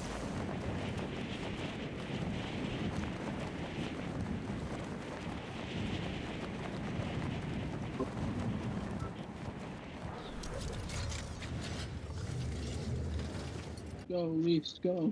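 Wind rushes loudly and steadily.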